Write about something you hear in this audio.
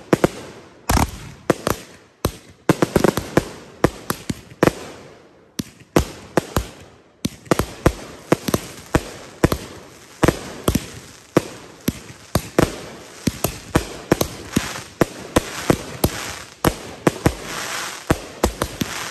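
Firecrackers pop and bang in rapid bursts outdoors.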